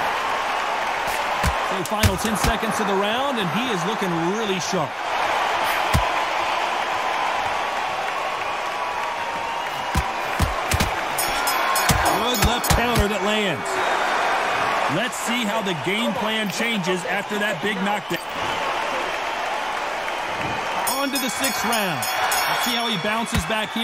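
Punches thud hard against a boxer.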